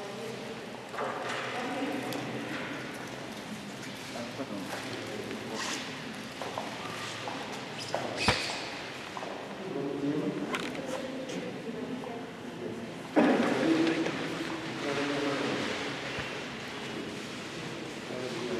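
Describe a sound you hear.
A man speaks calmly in a large echoing room.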